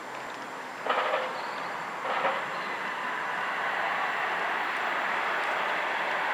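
A distant train approaches with a low, steady rumble.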